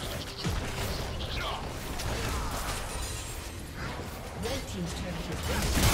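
Weapons clash and strike with sharp hits.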